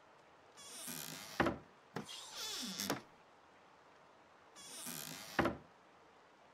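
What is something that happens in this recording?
A wooden drawer slides open and shut.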